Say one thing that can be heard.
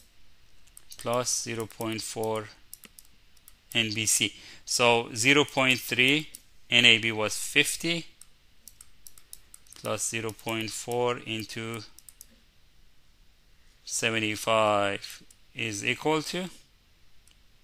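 A man explains calmly through a microphone, in short bursts with pauses.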